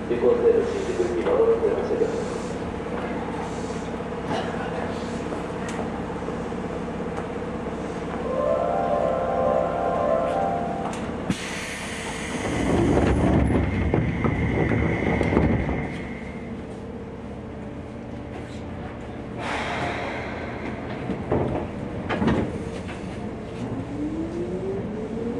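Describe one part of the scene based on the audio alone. A train hums and rumbles steadily.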